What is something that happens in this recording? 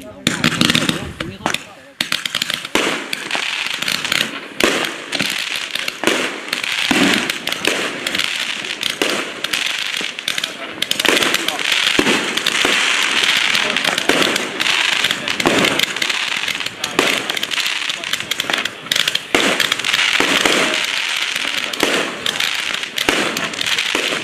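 Fireworks fountains hiss and crackle steadily.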